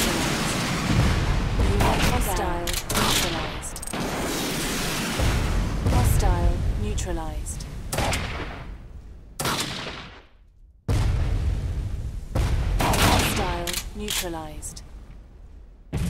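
Laser shots zap in quick bursts.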